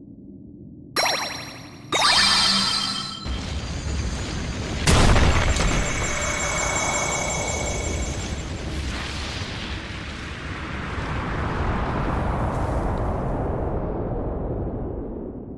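A magical blast roars and rumbles, then slowly fades.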